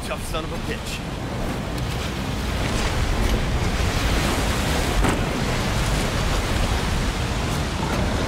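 A boat's outboard motor roars steadily.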